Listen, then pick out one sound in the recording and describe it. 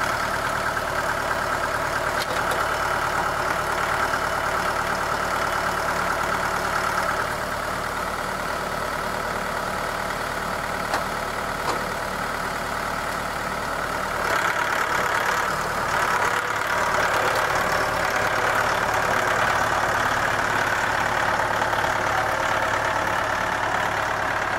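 A log scrapes and drags along dirt.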